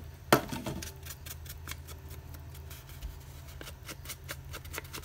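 An ink pad taps repeatedly against paper.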